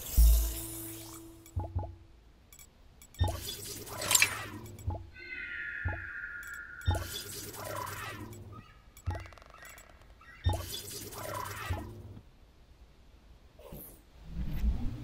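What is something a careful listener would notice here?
Short electronic clicks and chimes sound in quick bursts.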